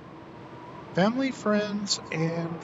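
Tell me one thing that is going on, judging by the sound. A man speaks into a microphone close by.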